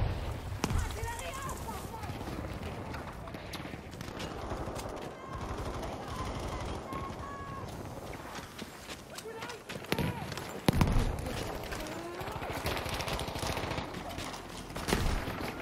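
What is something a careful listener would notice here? Gunshots crack now and then amid a battle.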